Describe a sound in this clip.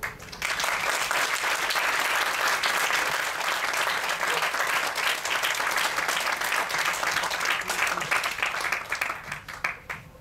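An electric guitar plays along.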